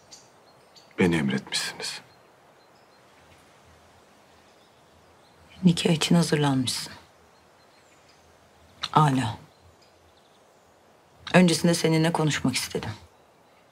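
A woman speaks softly and calmly.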